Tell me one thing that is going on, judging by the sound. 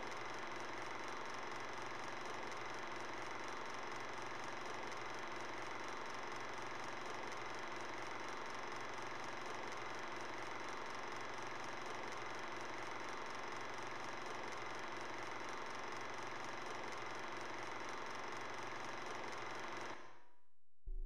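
A film projector whirs steadily.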